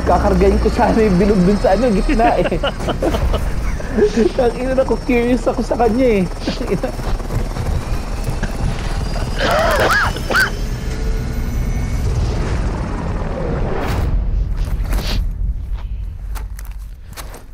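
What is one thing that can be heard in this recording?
A helicopter's engine and rotors roar steadily close by.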